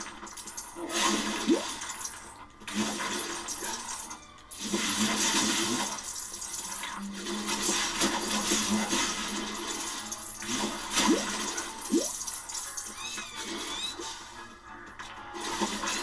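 Plastic bricks clatter and scatter as objects are smashed apart.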